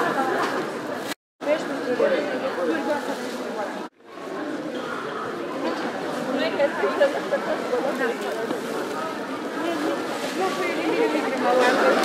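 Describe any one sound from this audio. Plastic bags rustle as women handle goods.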